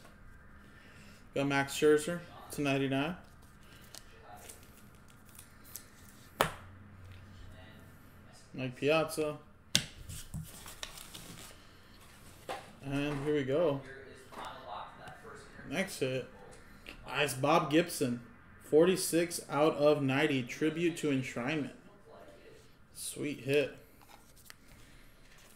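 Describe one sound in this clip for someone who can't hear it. Cards rustle and click as hands handle them.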